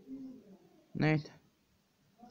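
A video game plays a sharp hit sound effect.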